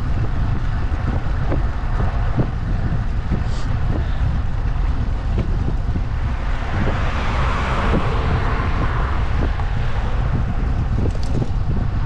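Wind rumbles steadily against a microphone.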